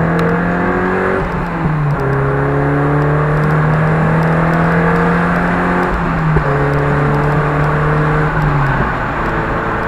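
A car engine drones through an aftermarket sports exhaust at steady motorway speed, heard from inside the car.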